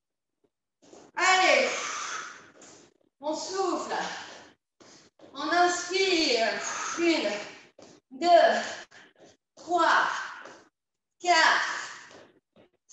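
A woman speaks with animation, heard through an online call.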